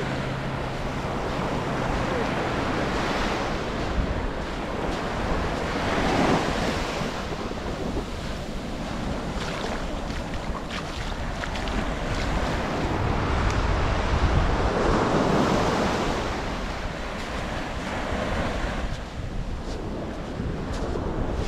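Wind blows across an open beach outdoors.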